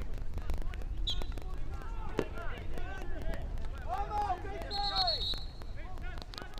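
An umpire's whistle blows short and shrill.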